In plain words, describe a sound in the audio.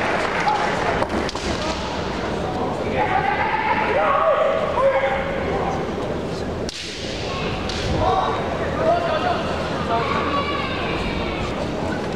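Bamboo swords clack against each other.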